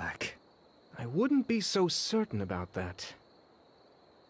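A younger man answers calmly, close by.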